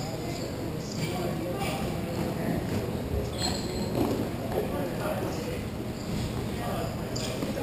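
Sticks clack against a ball and against each other.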